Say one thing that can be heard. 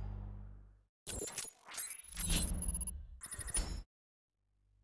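Short electronic menu blips sound in quick succession.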